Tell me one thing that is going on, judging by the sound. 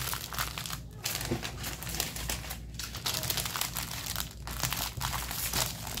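Paper rustles as a hand handles a sheet.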